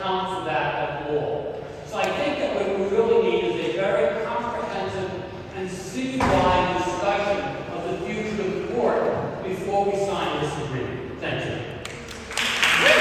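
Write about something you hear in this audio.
An elderly man speaks steadily into a microphone in a large echoing hall.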